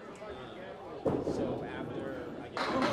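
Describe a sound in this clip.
Bowling pins crash as a ball strikes them.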